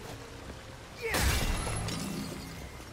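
A sword whooshes through the air in a loud, sudden slash.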